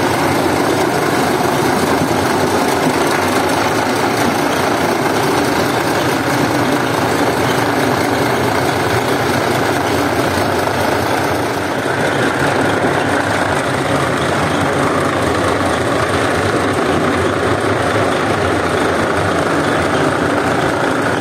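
A floor scrubbing machine whirs loudly and steadily.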